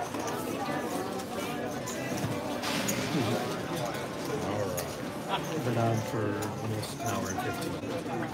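Playing cards slide and rustle across a felt table.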